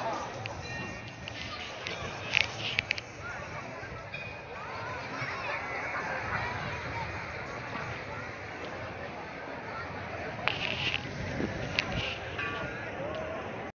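A large crowd chatters in the distance outdoors.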